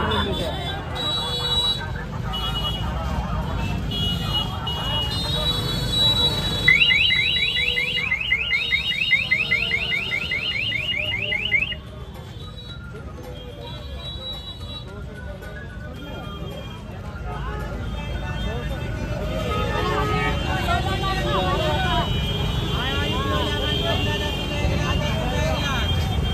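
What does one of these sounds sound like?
A crowd chatters and murmurs all around outdoors.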